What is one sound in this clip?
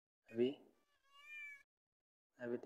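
A cat meows softly nearby.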